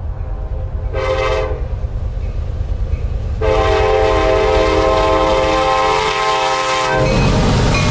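A train horn blares loudly as a locomotive approaches.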